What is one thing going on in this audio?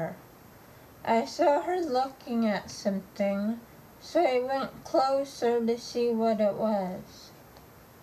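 A young woman talks calmly and close by.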